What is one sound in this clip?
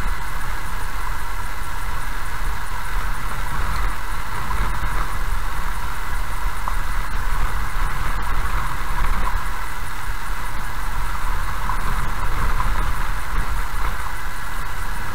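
Tyres crunch and rumble over a gravel road.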